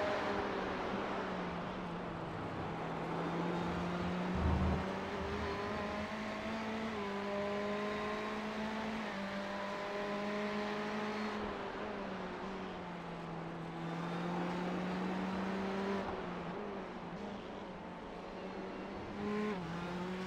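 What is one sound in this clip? A racing car engine roars steadily, rising and falling in pitch as the driver shifts gears.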